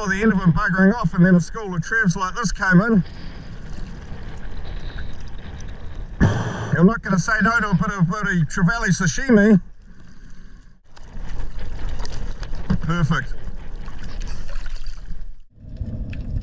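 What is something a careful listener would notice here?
Water splashes and laps close by.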